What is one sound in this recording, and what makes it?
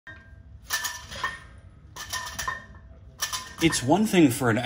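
Metal weight plates clank and rattle on a barbell.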